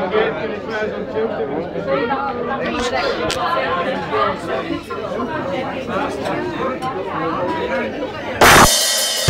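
A drummer plays a drum kit.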